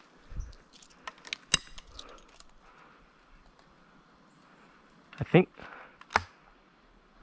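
Dry twigs snap and crack underfoot.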